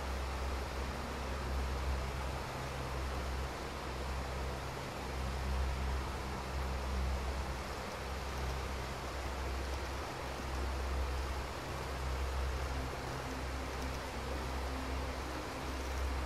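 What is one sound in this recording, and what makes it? A fire crackles steadily.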